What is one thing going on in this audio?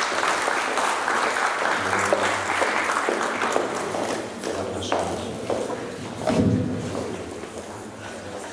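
An audience applauds, and the clapping fades away.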